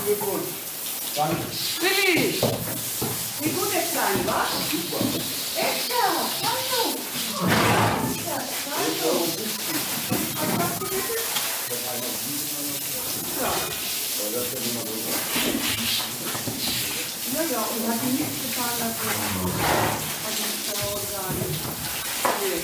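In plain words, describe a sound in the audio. Water sprays from a hose and splashes onto a hard floor.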